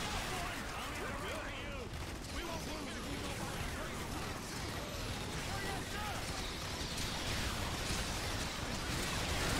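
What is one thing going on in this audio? Explosions rumble and crackle.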